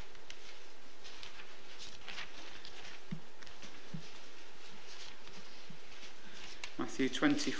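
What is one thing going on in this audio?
Papers rustle as they are shuffled.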